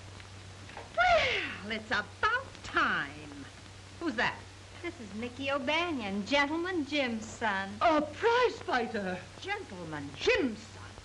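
A woman talks excitedly, exclaiming loudly.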